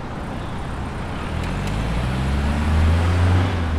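A car engine grows louder as a car drives past close by.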